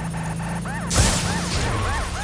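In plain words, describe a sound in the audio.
A vehicle crashes with a loud bang.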